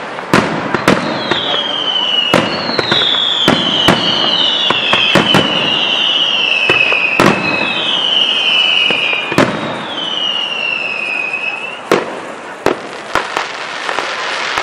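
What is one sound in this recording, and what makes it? Fireworks burst with sharp bangs and pops.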